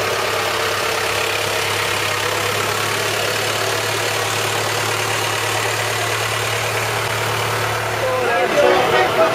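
A tractor engine hums steadily nearby.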